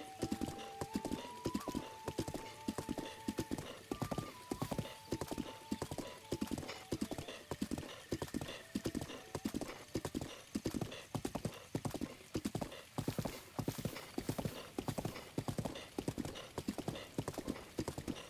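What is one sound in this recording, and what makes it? Hooves gallop quickly in a steady rhythm over grass.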